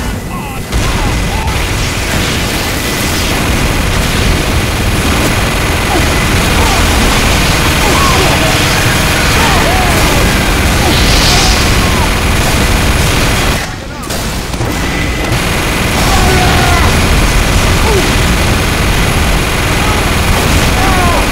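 Guns and explosions crackle in a busy fight nearby.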